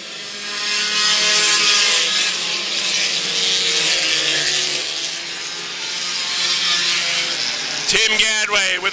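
Race car engines roar loudly as several cars speed around a track.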